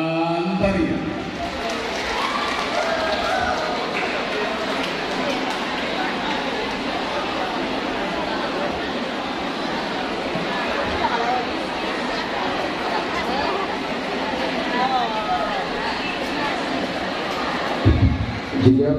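A large crowd chatters in an echoing hall.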